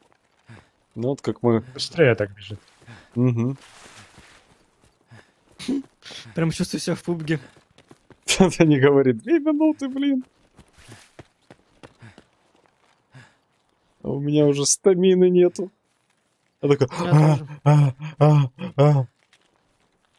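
A man talks with animation into a microphone, close up.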